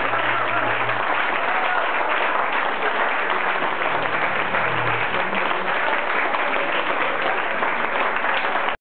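A large crowd applauds loudly in an echoing hall.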